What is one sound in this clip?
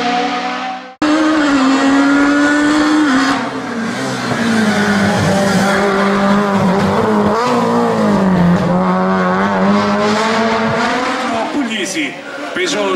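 A second rally car engine roars close by, revving and shifting gears.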